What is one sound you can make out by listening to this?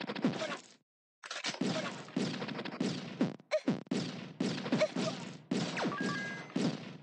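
Electronic game gunshots fire in rapid, repeated bursts.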